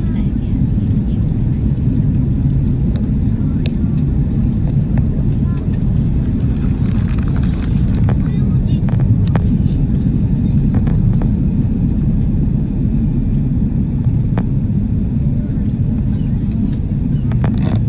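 Jet engines roar with a steady low rumble.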